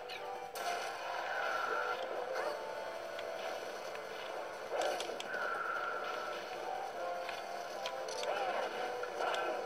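Video game fight sounds and music play from a small speaker.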